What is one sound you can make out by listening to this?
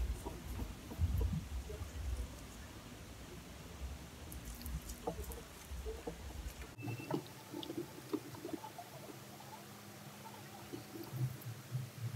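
Fingers rub a gritty scrub over skin, close by.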